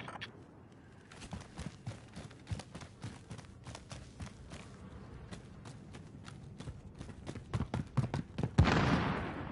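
Footsteps tap quickly across a hard floor.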